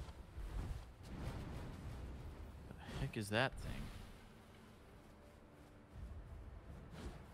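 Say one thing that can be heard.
Footsteps rustle through dry grass and leaves.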